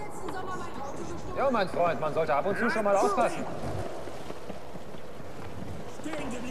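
Skateboard wheels roll over stone paving.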